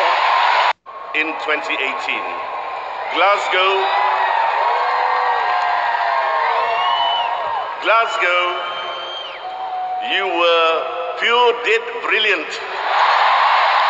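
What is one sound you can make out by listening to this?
A man speaks into a microphone over loudspeakers in a large echoing arena.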